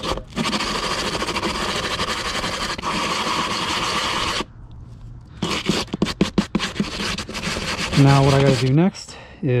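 Sandpaper rasps quickly back and forth over plastic, close by.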